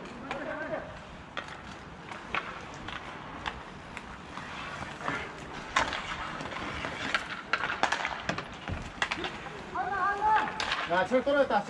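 Roller skate wheels rumble on a hard surface.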